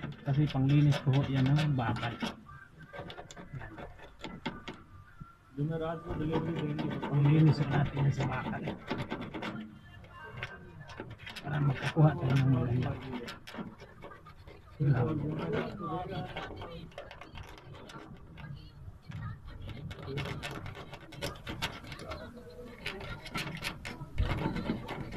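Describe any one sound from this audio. Cables rustle and scrape against a rough wall.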